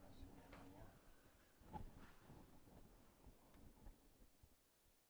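Fabric rustles softly.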